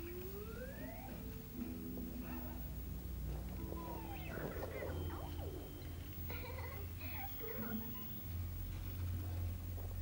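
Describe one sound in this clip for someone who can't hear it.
A young boy babbles nearby.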